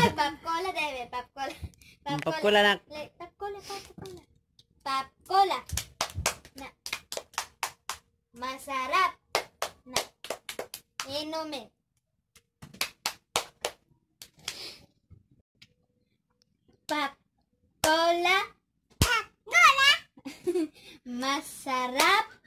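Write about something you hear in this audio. A young girl sings a clapping rhyme close by.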